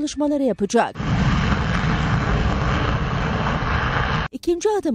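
A fighter jet roars loudly as it takes off.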